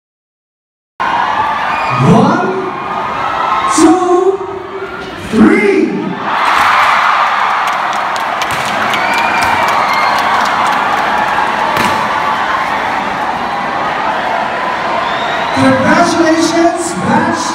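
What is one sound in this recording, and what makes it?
A large crowd screams and cheers loudly in a big echoing hall.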